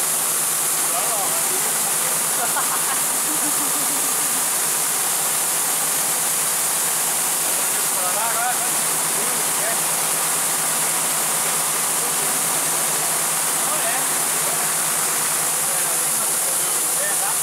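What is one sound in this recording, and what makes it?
A man talks and laughs nearby.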